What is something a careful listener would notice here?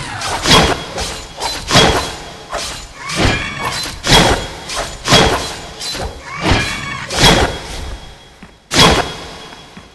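Sword blows strike a creature with sharp metallic hits.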